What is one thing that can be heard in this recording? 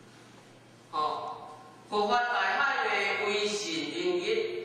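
A middle-aged man speaks loudly and steadily through a microphone.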